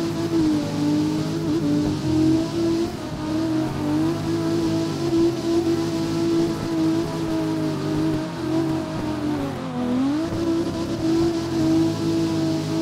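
A car engine revs high and steady as the car drifts.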